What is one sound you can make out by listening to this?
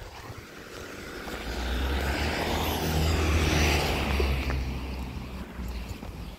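A van drives past close by, its engine rumbling up and fading.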